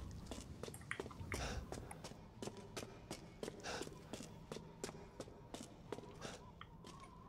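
Footsteps tap steadily on a stone floor in an echoing hall.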